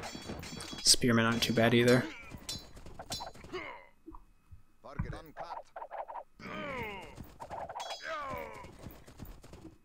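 Swords clash and clang in a battle.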